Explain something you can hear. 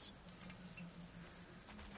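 Footsteps rustle through leaves on a forest floor.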